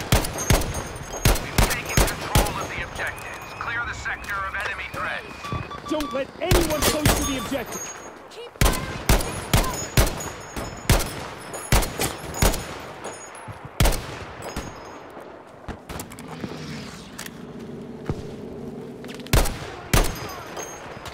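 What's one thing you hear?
Rifle shots crack repeatedly.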